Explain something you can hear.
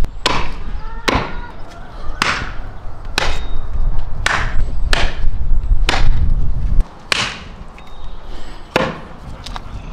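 A cleaver chops through meat and bone on a wooden block with heavy thuds.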